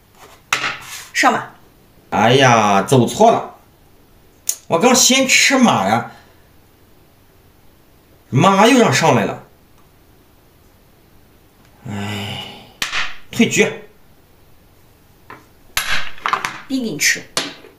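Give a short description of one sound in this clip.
Plastic game pieces click as they are set down on a board.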